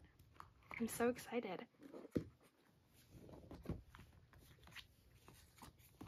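A stiff book page flips over.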